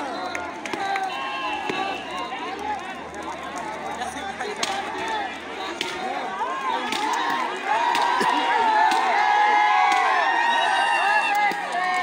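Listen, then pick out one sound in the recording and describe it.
A bonfire crackles and pops.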